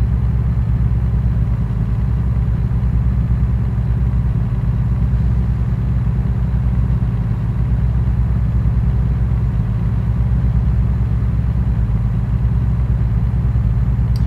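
A truck engine hums with a low, steady drone as it cruises along a highway.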